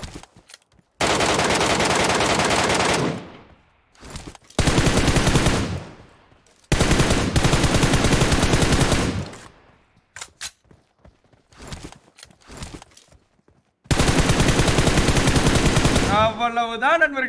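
Rifle shots fire in rapid, loud bursts.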